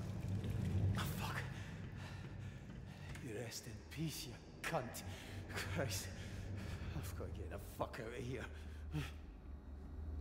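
A young man speaks quietly into a close microphone.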